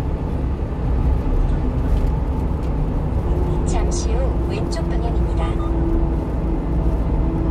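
A car's engine and tyres hum steadily on a motorway.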